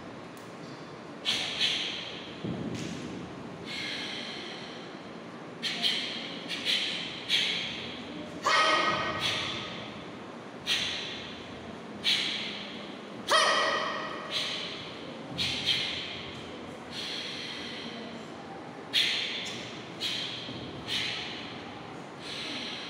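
Bare feet thump and slide on a hard floor.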